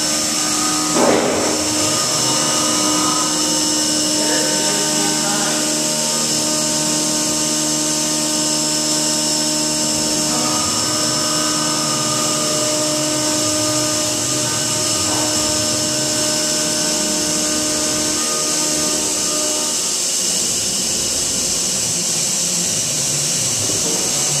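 Coolant sprays and splashes hard against glass.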